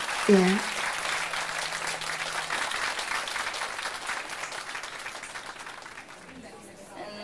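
A crowd applauds and cheers indoors.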